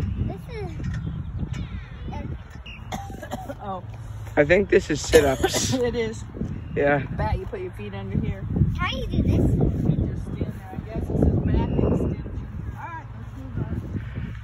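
A young girl talks excitedly.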